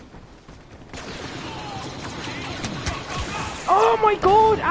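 Blaster rifles fire in rapid bursts.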